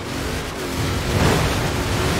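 Water splashes and sprays under a car's wheels.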